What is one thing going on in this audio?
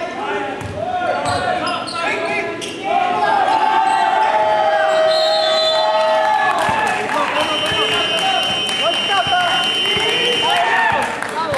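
A basketball bounces on the hard floor.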